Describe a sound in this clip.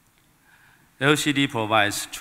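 A man speaks through a loudspeaker in a large hall.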